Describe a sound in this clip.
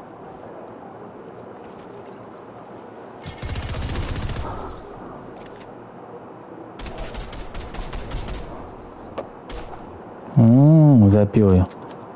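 Footsteps run on pavement.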